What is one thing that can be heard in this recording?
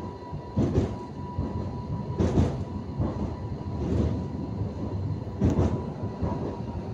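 A tram rumbles along its rails.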